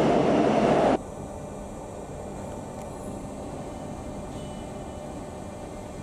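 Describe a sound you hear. A stopped train hums quietly.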